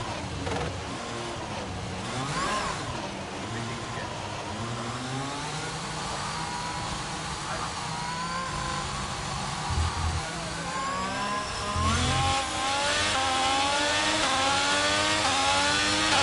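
A racing car engine whines, dropping in pitch as it slows for corners and rising as it speeds up.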